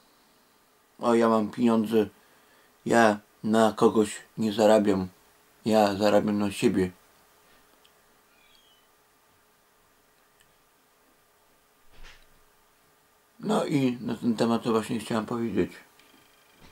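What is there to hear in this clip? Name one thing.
A middle-aged man speaks calmly and close up, in short bursts with pauses.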